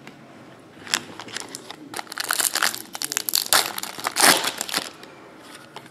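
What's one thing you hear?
Foil packs crinkle and rustle as they are torn open.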